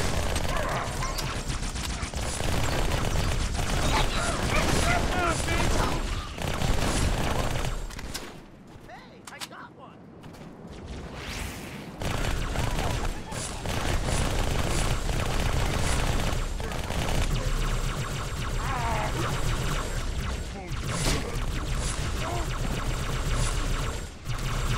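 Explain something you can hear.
Plasma weapons fire with sharp electric zaps.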